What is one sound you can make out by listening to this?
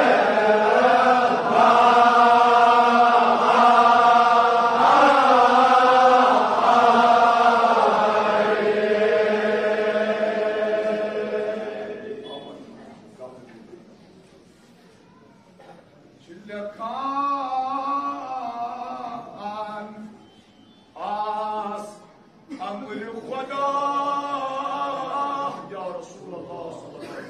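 A man chants a slow, mournful recitation through a loudspeaker in a large echoing hall.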